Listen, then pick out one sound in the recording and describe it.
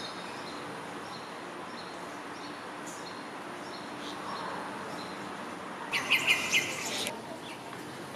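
A small bird chirps repeatedly nearby.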